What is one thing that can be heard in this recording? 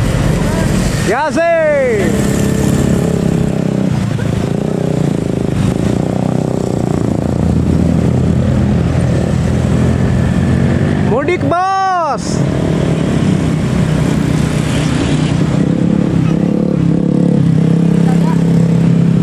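Vehicle engines rumble steadily as traffic passes close by.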